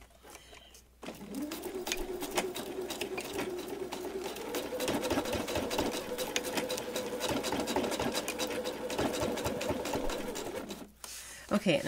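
A sewing machine runs, stitching rapidly with a steady whirring hum.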